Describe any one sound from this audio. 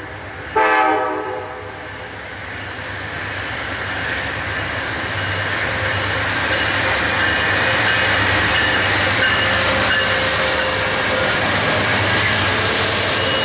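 A diesel locomotive approaches and roars past.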